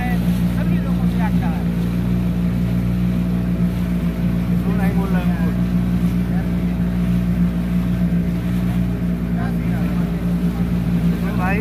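A motorboat engine drones steadily and loudly.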